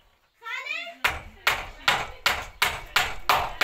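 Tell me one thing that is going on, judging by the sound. A hammer pounds nails into wood with sharp, rapid blows.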